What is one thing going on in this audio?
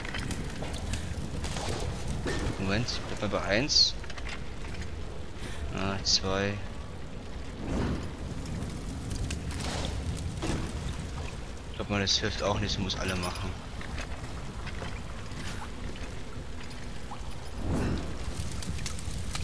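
A fire whooshes and crackles as it catches and burns.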